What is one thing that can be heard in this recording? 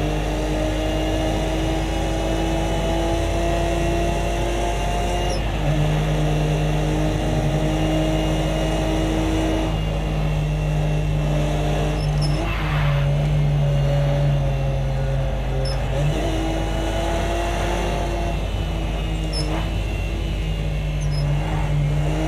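A racing car engine roars steadily, rising and falling in pitch as the car speeds up and slows down.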